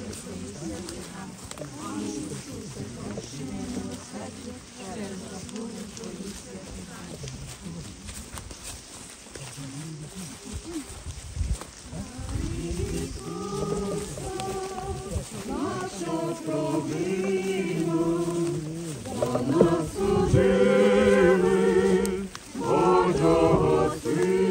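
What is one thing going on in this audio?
Many footsteps crunch on dry leaves.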